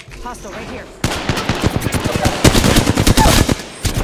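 A rapid-fire gun shoots in loud bursts.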